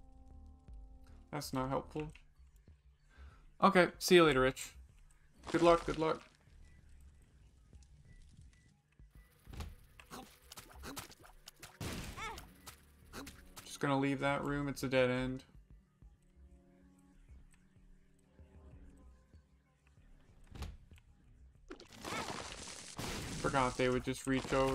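Short popping and splatting game sound effects play as shots hit enemies.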